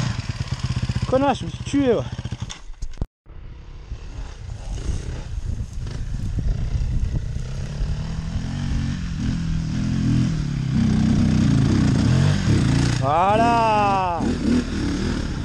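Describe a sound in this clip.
Another dirt bike engine whines as a rider passes close by.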